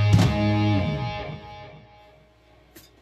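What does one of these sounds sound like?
An electric guitar chord rings out loudly and fades.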